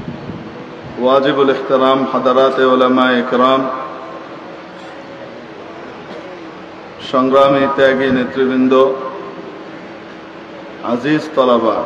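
A man preaches loudly and with fervour, singing out long phrases through a loudspeaker outdoors.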